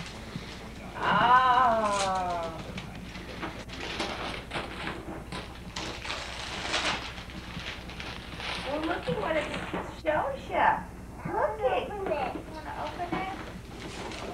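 A young girl talks.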